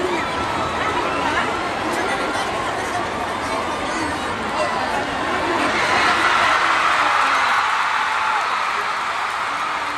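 A large crowd cheers and chatters loudly in a big echoing hall.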